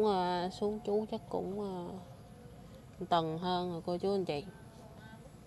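A woman speaks softly in a sing-song voice close by.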